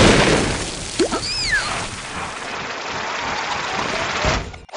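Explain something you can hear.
A robot fires a cartoonish zapping blast.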